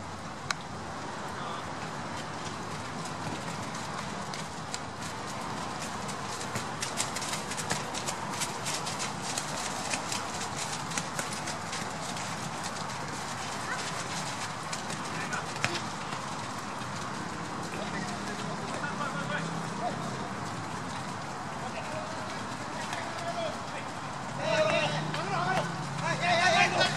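Rain patters steadily on a wet field outdoors.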